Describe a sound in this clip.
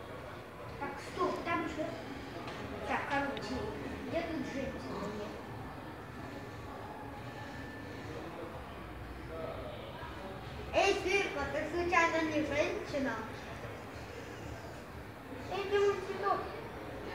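A child speaks excitedly nearby.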